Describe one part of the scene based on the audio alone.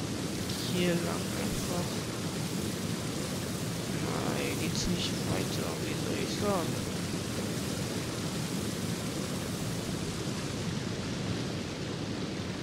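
A waterfall roars nearby.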